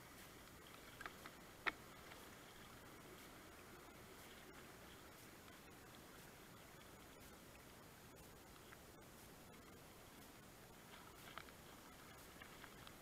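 A paddle splashes in the water now and then.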